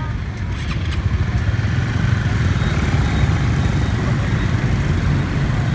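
Motor scooter engines hum as a crowd of scooters pulls away.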